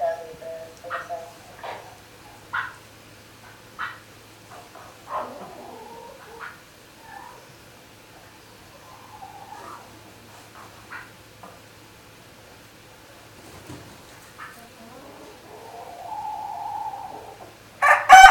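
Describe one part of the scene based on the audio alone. A hen clucks softly close by.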